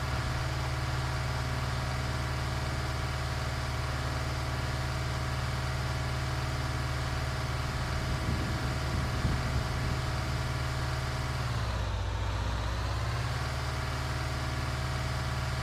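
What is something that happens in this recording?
Tyres crunch and rumble over a rough gravel road.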